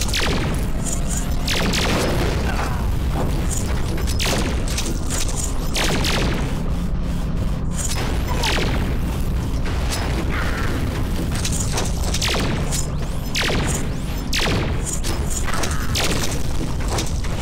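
Cartoon explosions boom again and again.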